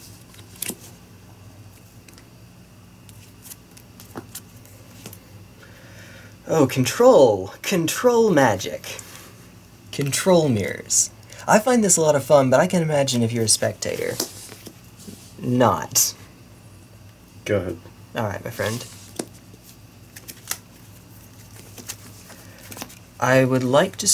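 Playing cards are laid down and slid across a soft mat.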